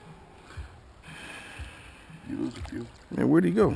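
Shallow water splashes softly around wading legs.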